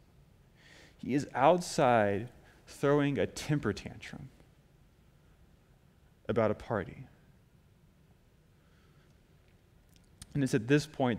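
A man speaks calmly into a microphone in a room with a slight echo, with pauses between phrases.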